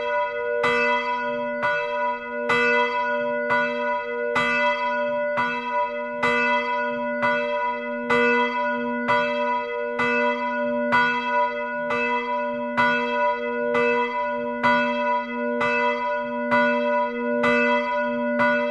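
A large bell swings and rings loudly, close by, its clapper striking again and again with a long ringing tone between strokes.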